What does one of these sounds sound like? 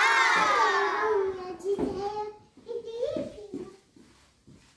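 A young girl talks and exclaims excitedly close by.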